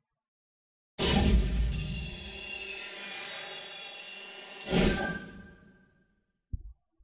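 A short triumphant fanfare plays loudly.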